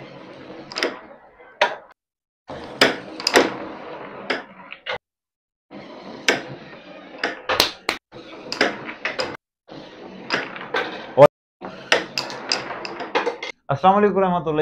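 A carrom striker clacks sharply against wooden coins on a board.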